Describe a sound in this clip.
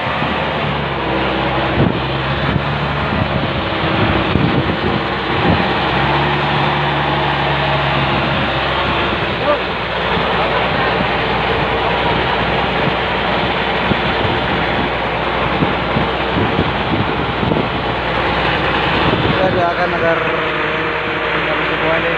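Waves splash against the side of a moving boat.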